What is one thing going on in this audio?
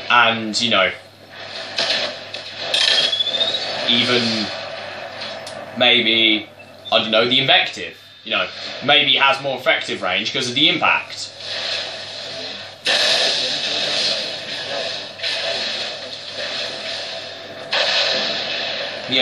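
Gunshots ring out in quick bursts from a game playing through a speaker.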